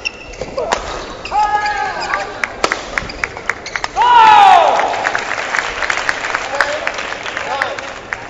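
Badminton rackets strike a shuttlecock in a large hall.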